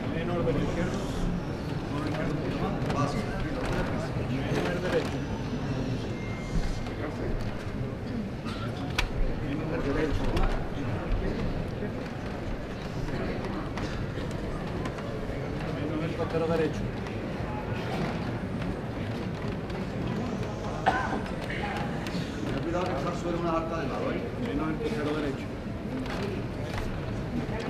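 A large crowd of men and women murmurs and chatters nearby outdoors.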